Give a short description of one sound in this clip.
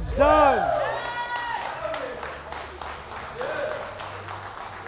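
Men shout with excitement nearby in a large echoing room.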